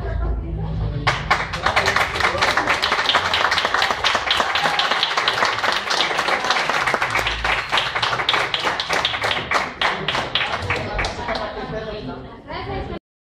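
A saxophone plays a lively tune in a room with some echo.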